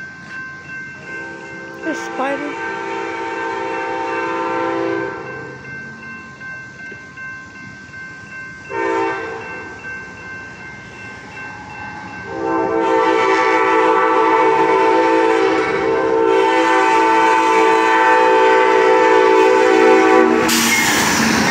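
A train horn blows loudly in long blasts.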